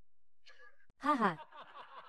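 A young man laughs close by.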